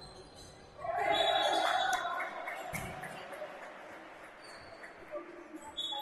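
A crowd cheers loudly in an echoing indoor hall.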